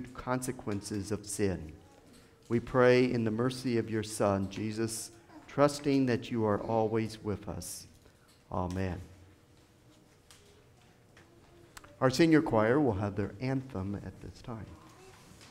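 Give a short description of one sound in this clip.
An elderly man chants through a microphone in an echoing hall.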